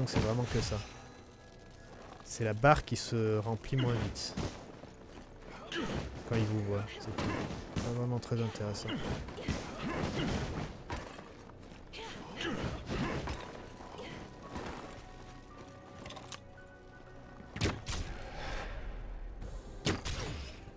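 Footsteps crunch through snow and thud on wooden planks.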